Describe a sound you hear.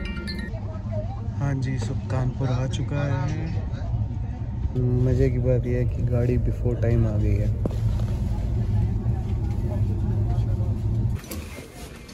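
A train rumbles steadily.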